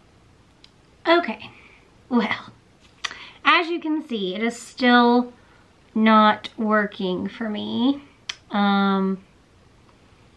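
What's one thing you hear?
A young woman talks casually close to a microphone.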